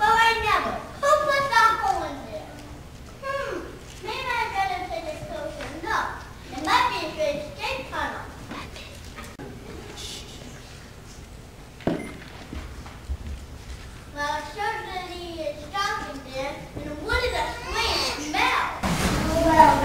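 A young boy speaks loudly in a play, heard in a hall with some echo.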